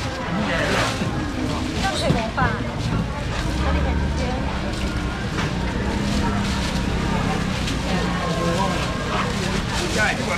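A busy crowd chatters all around.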